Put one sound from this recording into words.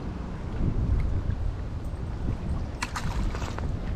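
A small fish splashes back into the water when released.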